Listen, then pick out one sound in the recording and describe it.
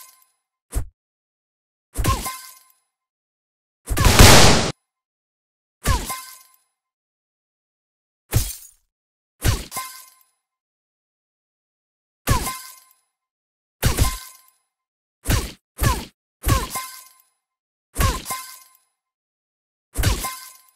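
Cartoon punches land with short thumping hits, again and again.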